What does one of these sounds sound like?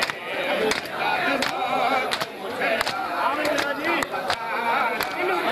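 A crowd of men chant along in unison.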